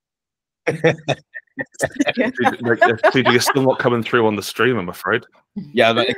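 Several people laugh over an online call.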